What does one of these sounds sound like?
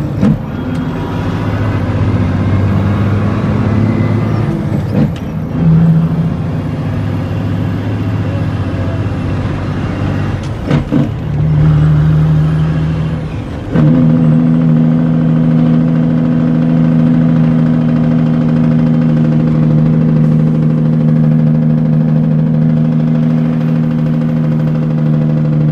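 A truck engine drones steadily while driving.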